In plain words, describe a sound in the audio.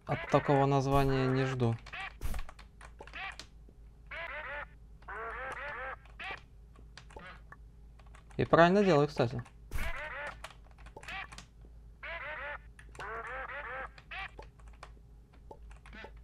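Short electronic chirps sound as a game character jumps.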